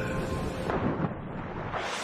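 A body splashes into water.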